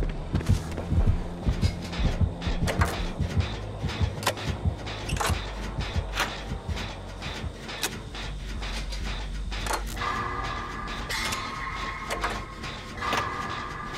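A machine clanks and rattles as it is repaired.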